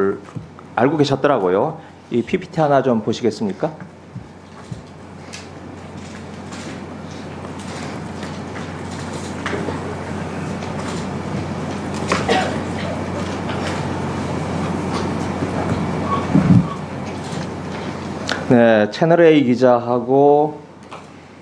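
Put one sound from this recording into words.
A middle-aged man speaks firmly into a microphone.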